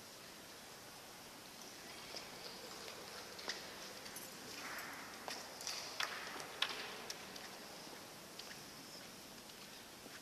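Footsteps walk across a stone floor.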